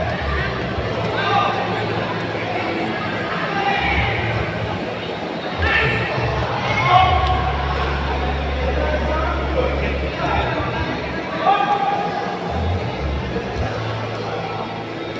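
A crowd chatters and cheers loudly.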